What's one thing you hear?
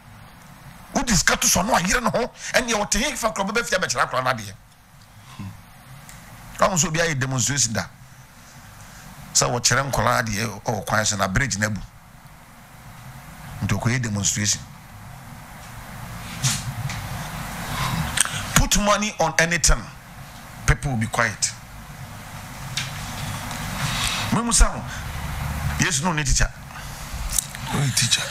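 A middle-aged man speaks with animation into a close microphone, in bursts with pauses.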